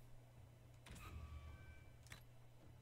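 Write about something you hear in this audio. A short game chime rings as an option is confirmed.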